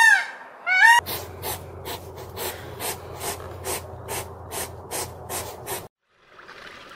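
A hedgehog snuffles with quick huffing clicks.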